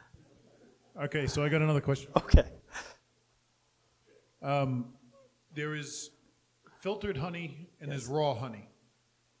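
A man speaks calmly into a handheld microphone.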